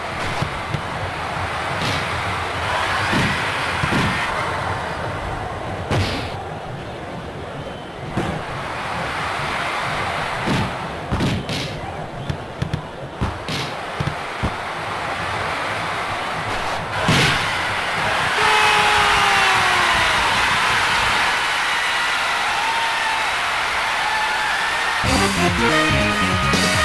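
Crowd noise from a stadium murmurs steadily.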